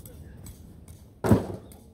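A heavy box thuds down onto the ground.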